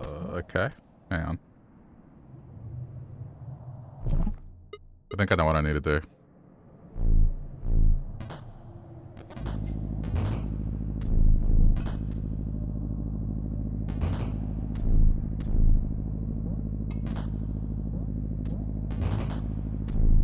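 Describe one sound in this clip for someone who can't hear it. Short electronic blips and chimes sound now and then.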